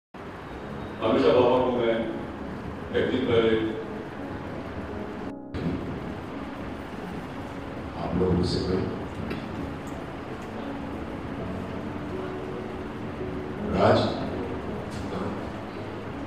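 An elderly man speaks with feeling into a microphone, heard through loudspeakers.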